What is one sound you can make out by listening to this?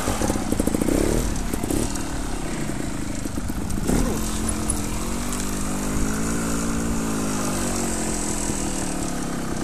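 A dirt bike engine revs up and down close by.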